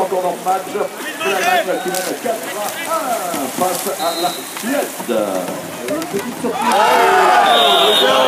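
Paddles splash and churn water.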